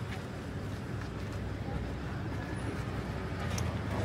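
Traffic rumbles steadily along a street outdoors.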